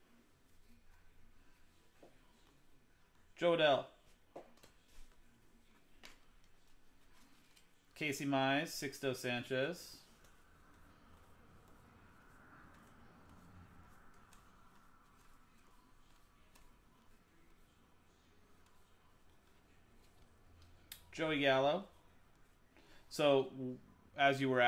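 Trading cards flick and rustle as they are sorted by hand.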